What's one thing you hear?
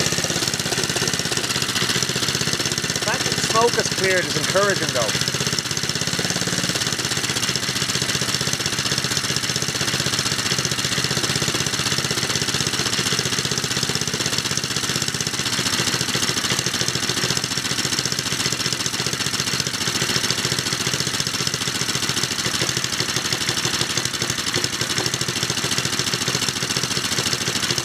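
A small petrol engine idles with a steady, fast chugging.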